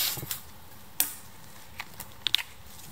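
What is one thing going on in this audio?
Footsteps crunch on dry leaves and twigs.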